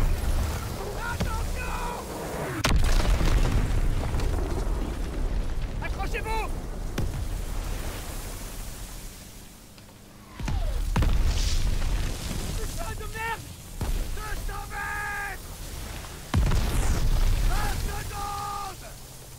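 Men shout orders over the din.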